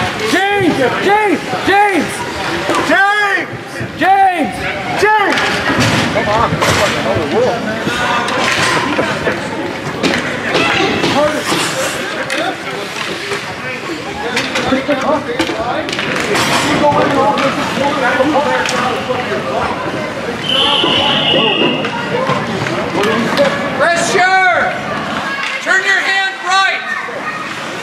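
Young children shout excitedly nearby.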